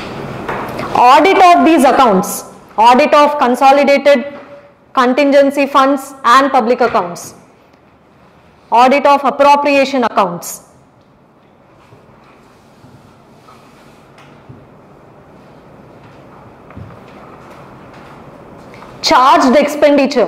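A young woman speaks clearly into a microphone, pausing between phrases.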